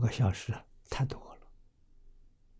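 An elderly man speaks calmly into a close microphone.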